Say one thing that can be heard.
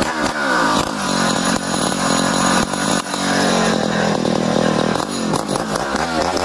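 A chainsaw engine idles with a steady low putter.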